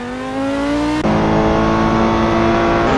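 A racing car engine roars loudly at high revs, heard from inside the cockpit.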